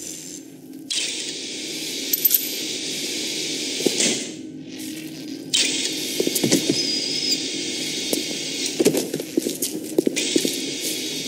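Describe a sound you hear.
Electricity crackles and sizzles close by.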